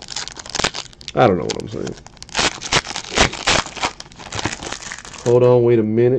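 A plastic wrapper crinkles and tears as it is opened.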